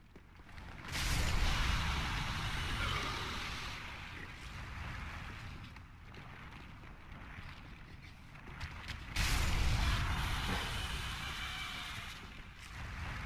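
A fire blast roars and crackles.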